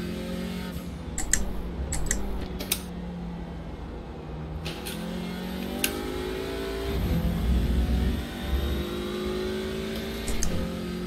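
A racing car engine revs and drones, rising and falling in pitch as it shifts gears.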